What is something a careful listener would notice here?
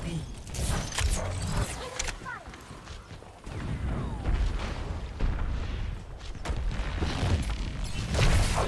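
A game gun fires bursts of loud shots and crackling beams.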